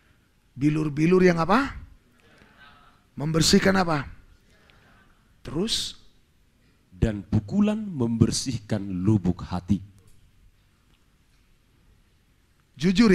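A man preaches through a microphone and loudspeakers in a large echoing hall, speaking in bursts with pauses.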